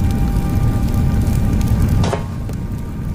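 A burst of fire roars loudly nearby.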